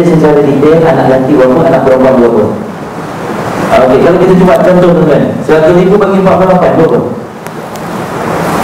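A man speaks calmly through a microphone, explaining.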